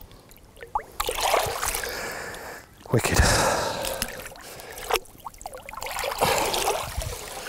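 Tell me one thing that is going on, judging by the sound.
Water splashes and sloshes as a large fish thrashes free.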